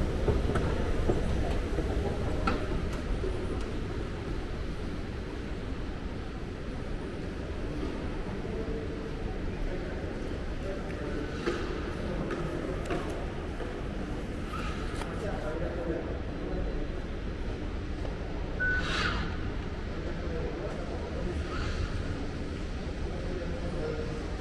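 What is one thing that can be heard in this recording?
Footsteps echo softly across a large, hard-floored hall.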